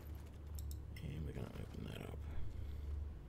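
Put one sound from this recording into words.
A middle-aged man speaks briefly and quietly into a close microphone.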